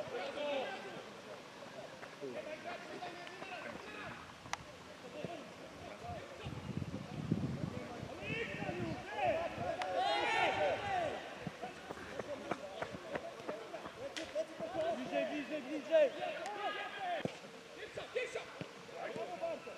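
Spectators shout and cheer outdoors.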